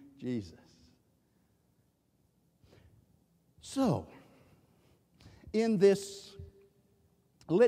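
An elderly man preaches with animation through a microphone in a large echoing hall.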